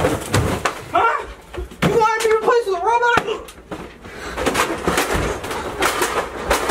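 Bodies thump and scuffle against furniture.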